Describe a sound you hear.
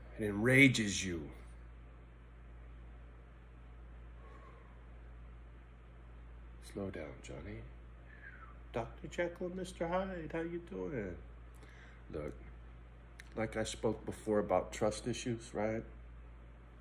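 A middle-aged man talks calmly and closely, with pauses.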